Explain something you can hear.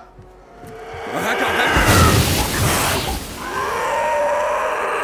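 A creature growls and snarls nearby.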